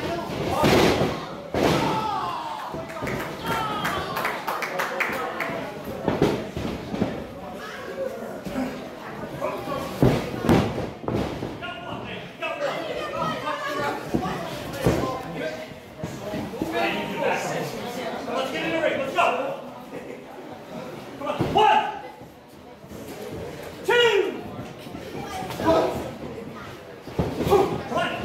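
A crowd cheers and shouts in an echoing hall.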